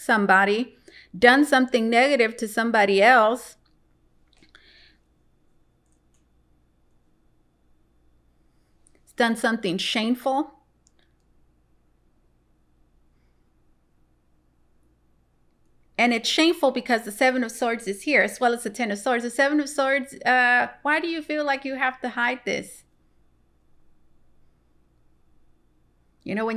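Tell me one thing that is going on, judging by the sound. A young woman speaks calmly and warmly into a close microphone, with pauses.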